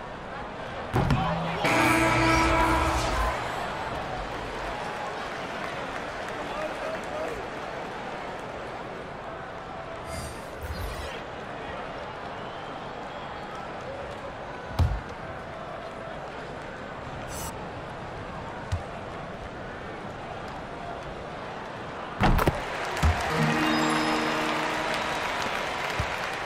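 A crowd cheers loudly for a moment.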